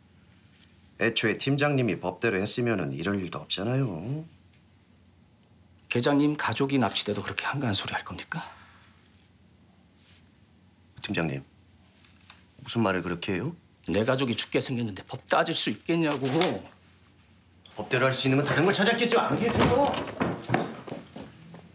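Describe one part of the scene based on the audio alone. A middle-aged man speaks seriously and tensely.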